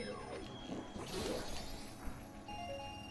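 A sword swings with a bright magical whoosh.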